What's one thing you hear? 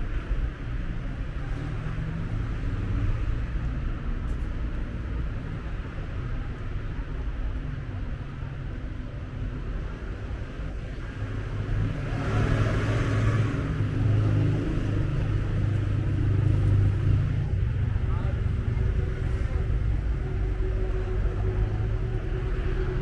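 City traffic hums steadily in the background outdoors.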